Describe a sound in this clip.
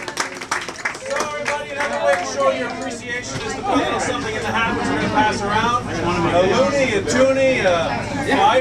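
Several people talk and chatter loudly nearby.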